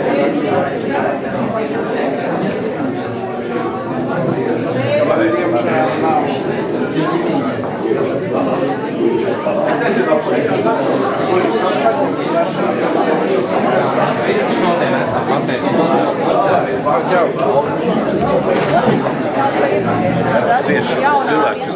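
Many people talk at once in a crowded room.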